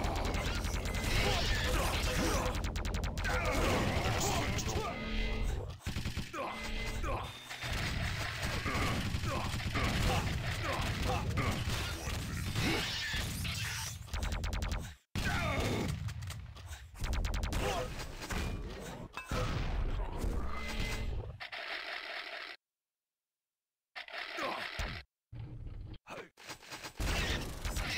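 Video game guns fire in rapid bursts and blasts.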